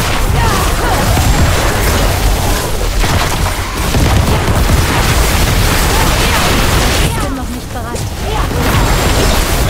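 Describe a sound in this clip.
Heavy impacts boom and rumble low.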